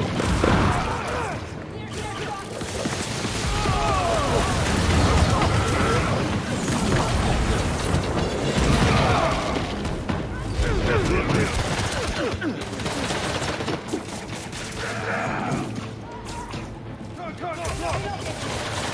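Punches, blasts and explosions thud and crack in a fast game fight.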